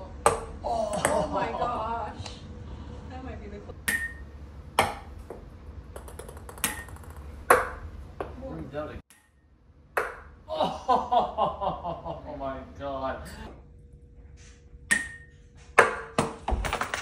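A ping pong ball bounces with sharp clicks on a hard surface.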